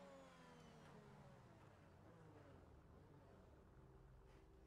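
A car's engine slows and idles low.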